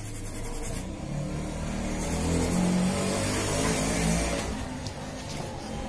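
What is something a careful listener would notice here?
A toothbrush scrubs briskly over a circuit board.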